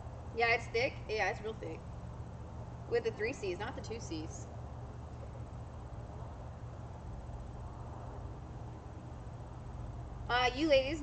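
Young women talk casually nearby, in short bursts.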